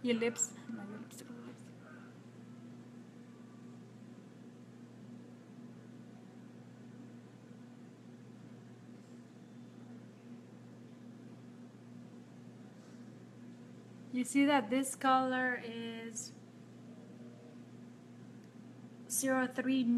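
A woman talks calmly, close to the microphone.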